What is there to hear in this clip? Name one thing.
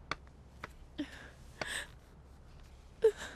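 A young woman gasps and whimpers close by.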